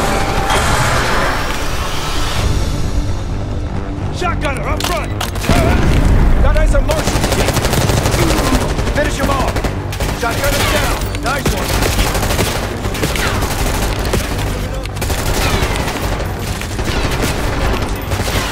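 Gunfire cracks in rapid, loud bursts.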